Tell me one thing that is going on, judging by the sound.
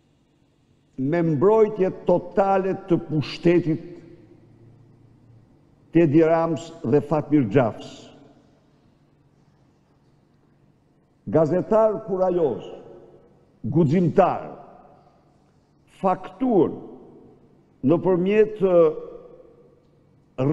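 An elderly man speaks forcefully into a microphone in bursts, with pauses, his voice echoing in a large hall.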